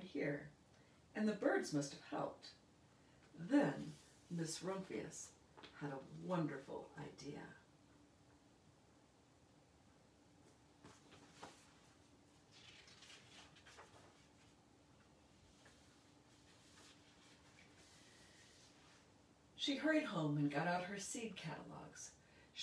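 A middle-aged woman reads aloud calmly and expressively, close by.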